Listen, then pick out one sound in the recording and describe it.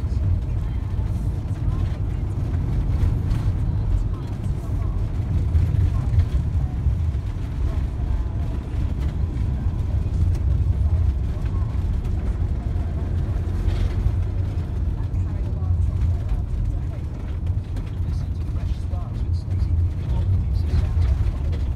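Wind rushes and buffets loudly against the microphone while moving fast outdoors.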